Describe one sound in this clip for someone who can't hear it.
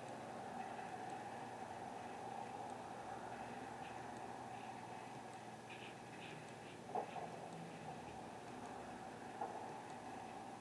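Cars drive past close by on a street.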